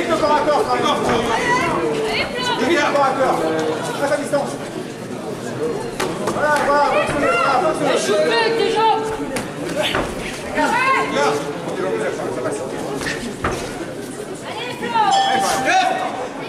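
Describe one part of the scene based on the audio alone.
Punches and kicks thud against bodies and gloves.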